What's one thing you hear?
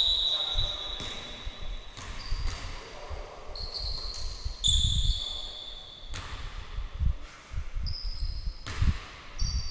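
A basketball bounces on the wooden floor with dull thuds.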